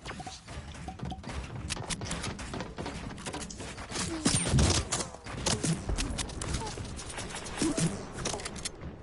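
Game building pieces snap into place with quick thuds.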